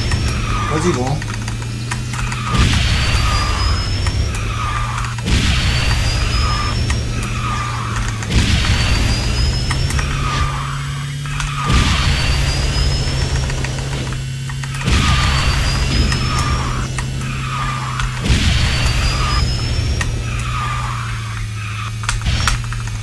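A racing kart engine hums steadily at high speed.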